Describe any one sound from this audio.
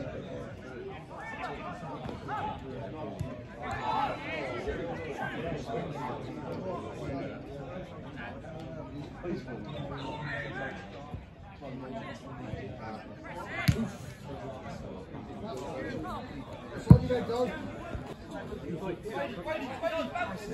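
Football players shout and call to each other across an open pitch.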